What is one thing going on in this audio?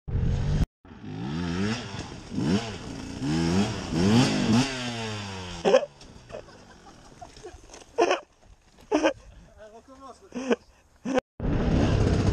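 A motorbike engine revs and sputters a short way off.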